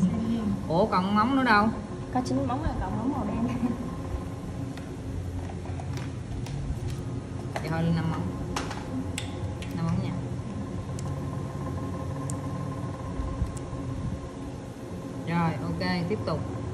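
Plastic nail tips click softly as they are handled.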